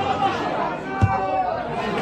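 A ball is kicked hard.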